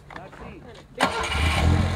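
A car engine starts and revs loudly.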